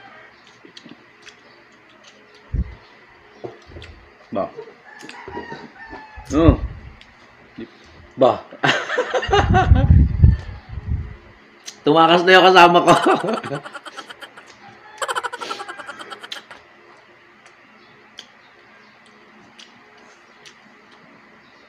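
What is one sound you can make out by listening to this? Food crunches and squelches as a man eats with his hands.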